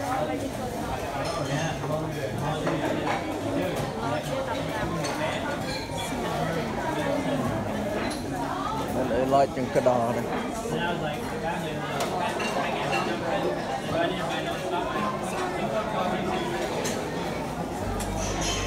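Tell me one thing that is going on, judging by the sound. Many voices chatter in the background of a busy room.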